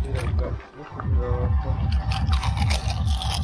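A man crunches crisps loudly while chewing.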